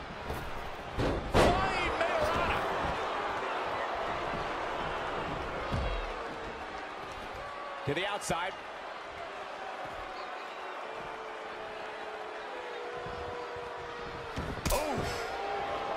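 Bodies slam hard onto a wrestling mat.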